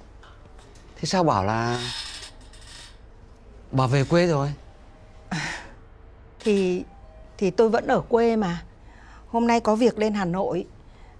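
A middle-aged woman speaks with concern, close by.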